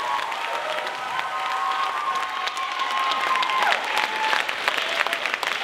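A choir sings a final held note in a large hall.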